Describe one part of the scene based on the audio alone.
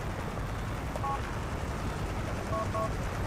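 A mobile phone beeps several times.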